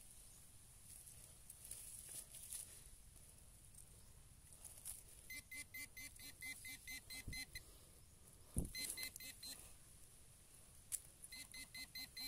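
Clumps of dry dirt crumble and patter onto the ground.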